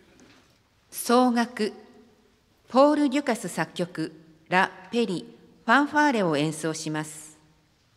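A young woman announces calmly through a loudspeaker in a large echoing hall.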